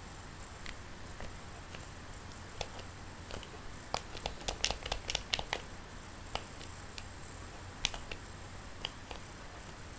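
Coins chime in a video game as they are collected.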